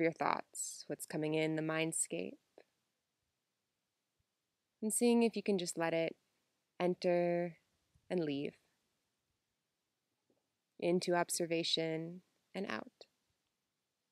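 A young woman speaks calmly and slowly, close to a microphone.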